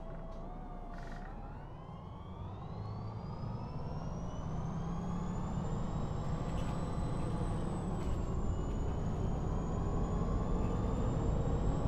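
A bus engine hums and whines higher as the bus speeds up.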